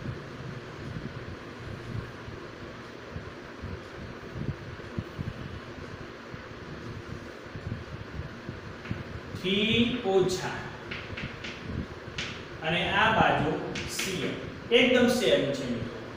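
Chalk taps and scrapes on a board.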